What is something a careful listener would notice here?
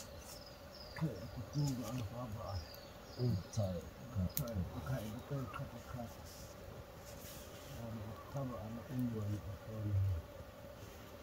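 Men talk quietly nearby outdoors.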